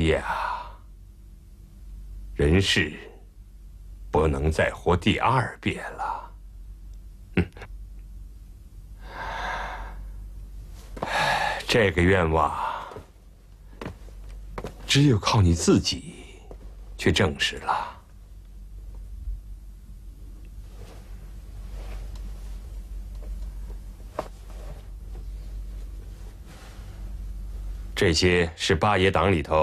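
A middle-aged man speaks in bursts, close by.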